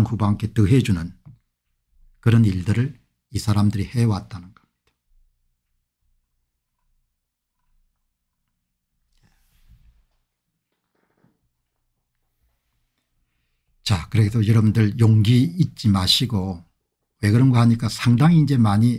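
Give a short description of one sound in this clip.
An older man speaks calmly and close to a microphone, with long pauses.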